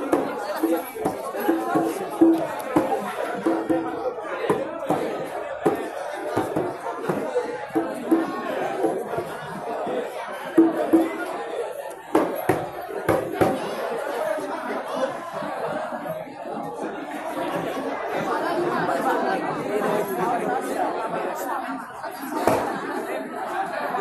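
A crowd of men and boys sings together in a room with some echo.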